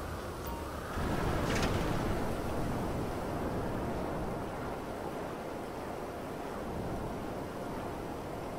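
Water hisses and sprays beneath a hover bike skimming over the sea.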